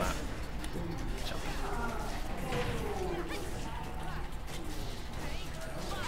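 Video game fighting sound effects crack and whoosh.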